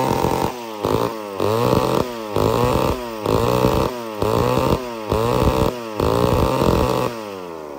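A chainsaw engine revs up and drops back over and over.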